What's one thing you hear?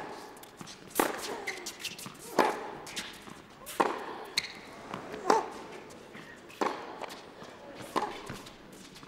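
A tennis ball is hit back and forth with sharp, regular pops.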